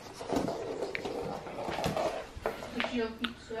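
A baby's hands pat on a hard floor while crawling.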